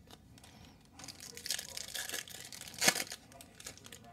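Plastic wrapping crinkles and tears as a pack is opened.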